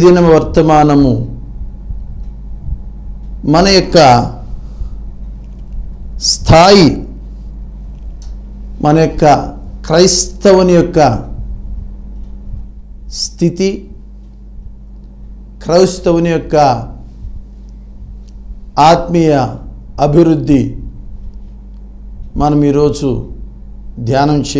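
A man speaks calmly and clearly into a close microphone, with pauses between phrases.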